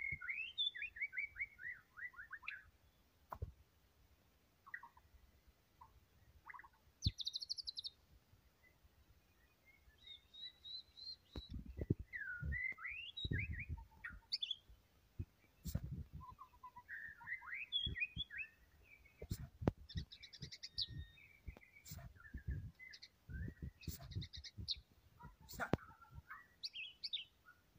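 A songbird sings close by in varied whistles, trills and chirps.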